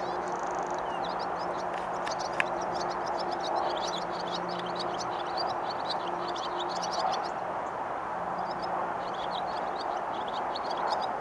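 A small bird twitters rapidly in high chirps.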